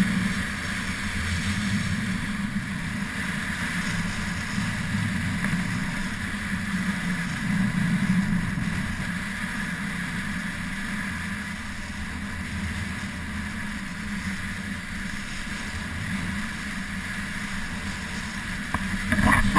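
Wind rushes past a fast downhill skier.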